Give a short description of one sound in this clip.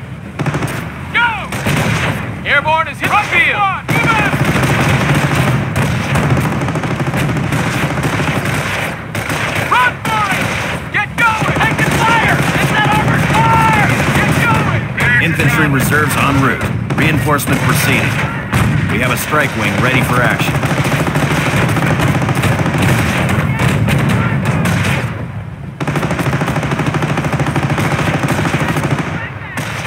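Gunfire crackles in a battle.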